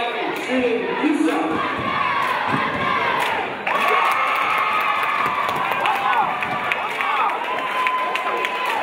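A crowd shouts and cheers in a large echoing gym.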